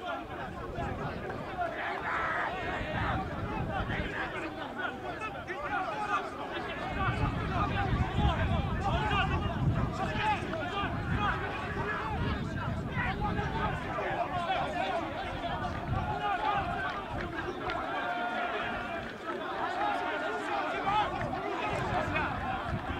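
Many young men shout and argue loudly at once, outdoors.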